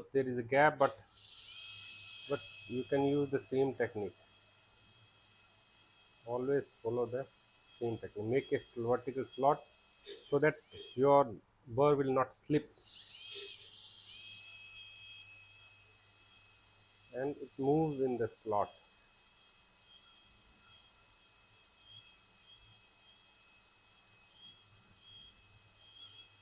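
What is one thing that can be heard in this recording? A dental drill whines at a high pitch.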